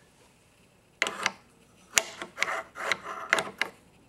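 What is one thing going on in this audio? A metal block clicks and knocks against a machine as it is handled.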